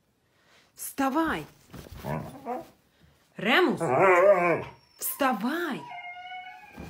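A dog howls and yowls in long, wavering cries, close by.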